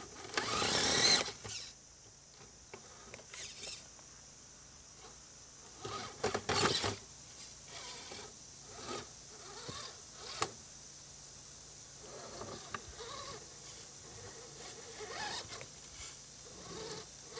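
Plastic tyres scrape and knock against rocks.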